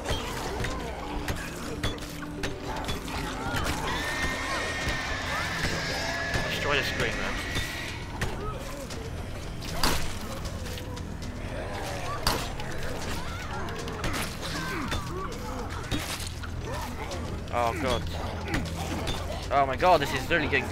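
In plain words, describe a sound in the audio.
Zombies groan and growl in a crowd nearby.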